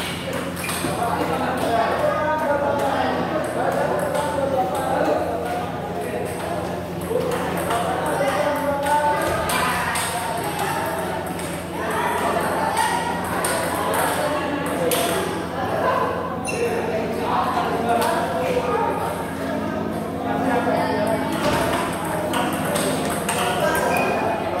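A table tennis ball clicks back and forth off paddles and the table.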